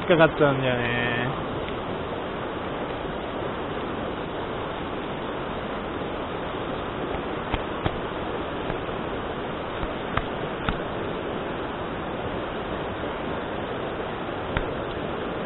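A fast river rushes and splashes over rocks, loud and steady.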